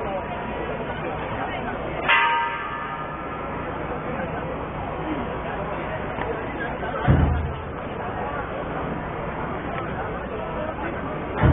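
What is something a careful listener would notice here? A dense crowd murmurs and chatters all around, close by.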